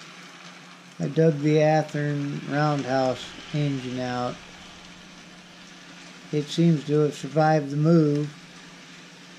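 A model train's horn blows in several short and long blasts.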